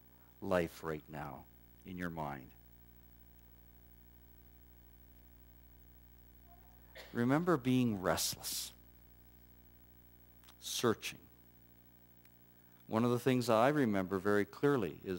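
A middle-aged man speaks with pauses through a microphone.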